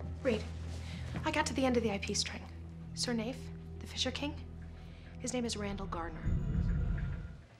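A young woman speaks with animation up close.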